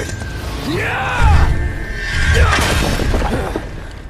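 Something bursts with a loud crash.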